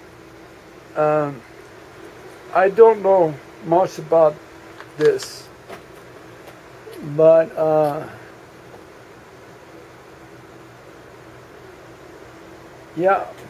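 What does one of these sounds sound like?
An elderly man speaks calmly close by, in short bursts.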